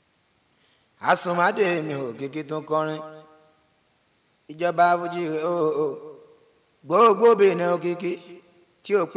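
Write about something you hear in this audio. A young man chants in a drawn-out, singing voice into a microphone, in short phrases with pauses.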